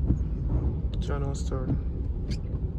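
Windscreen wipers sweep and squeak across the glass.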